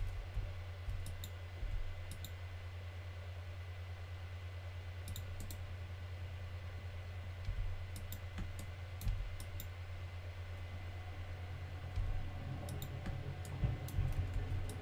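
Short soft clicks sound as items are moved about in a game.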